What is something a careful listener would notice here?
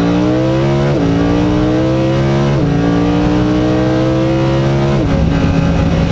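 Gear shifts crack sharply between gears.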